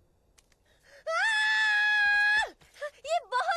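A young woman screams loudly up close.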